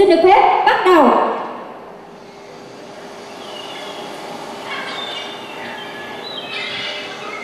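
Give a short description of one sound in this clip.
Music plays loudly through loudspeakers in a large echoing hall.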